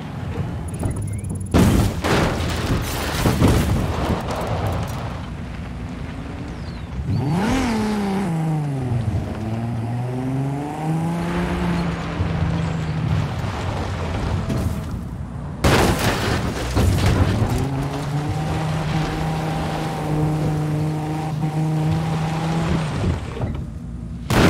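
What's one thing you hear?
Tyres crunch and skid over dirt and gravel.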